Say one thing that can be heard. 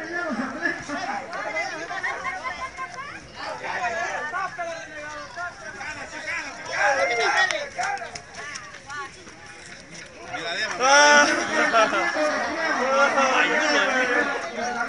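A crowd of people talks and shouts close by outdoors.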